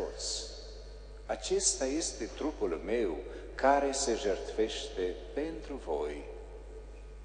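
A middle-aged man chants through a microphone in an echoing space.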